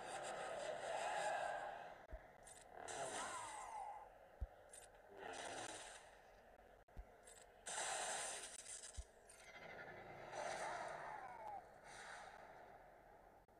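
Lightsabers swoosh and hum in short bursts.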